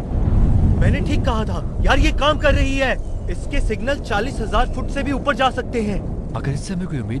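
A man speaks in a low, rough voice close by.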